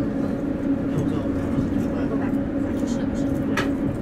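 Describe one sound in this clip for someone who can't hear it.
Another train rushes past close by.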